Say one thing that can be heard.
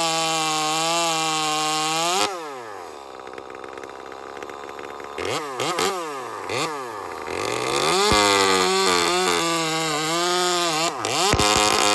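A chainsaw roars loudly as it cuts.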